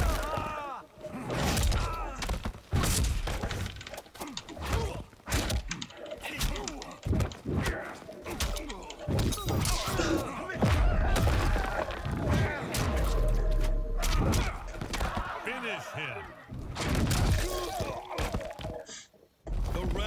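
Heavy punches and kicks land with sharp thuds and cracks.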